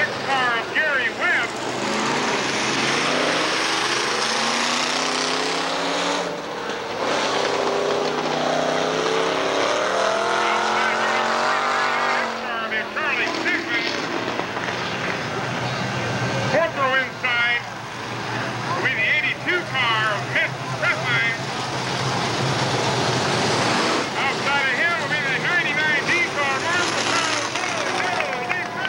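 Race car engines roar loudly as cars speed around a dirt track.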